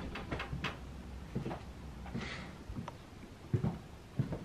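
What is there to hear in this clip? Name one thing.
Footsteps fall on a wooden floor.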